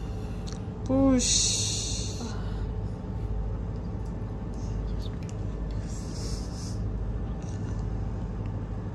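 A young woman moans and whimpers in pain close by.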